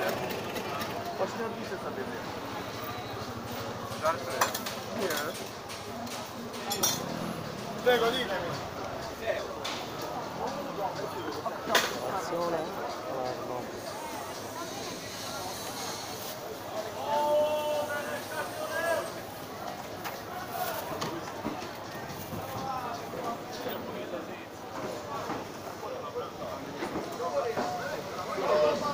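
A crowd of men and women chatter around outdoors.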